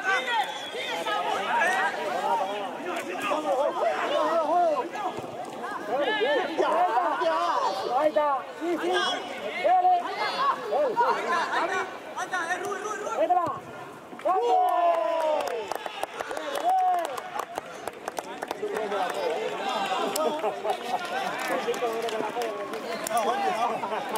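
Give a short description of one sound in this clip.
Young men shout and call out to each other across an open outdoor pitch.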